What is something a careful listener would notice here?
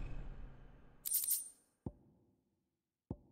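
Short menu clicks sound a few times.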